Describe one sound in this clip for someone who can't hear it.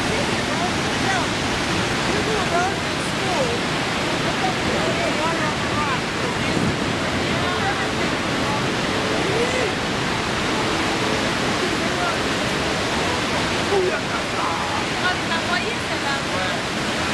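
A crowd of young and middle-aged men and women cheer and call out over the roar.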